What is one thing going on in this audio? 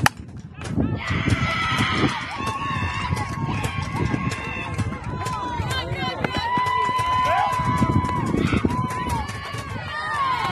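Young women shout and cheer outdoors.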